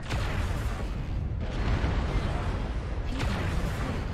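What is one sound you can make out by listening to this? Cannon fire and explosions boom nearby.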